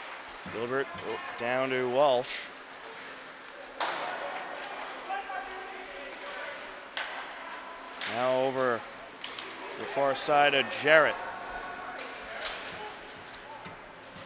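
Ice skates scrape and swish across an ice rink.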